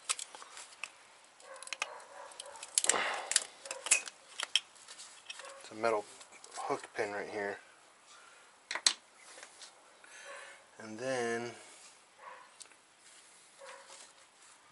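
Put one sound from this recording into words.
Metal tools click and clatter against an engine.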